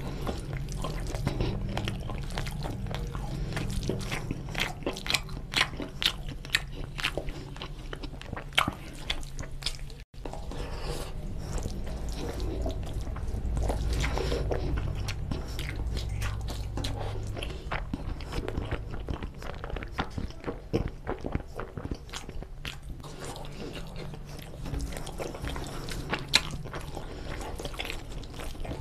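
A man chews food loudly and wetly close to a microphone.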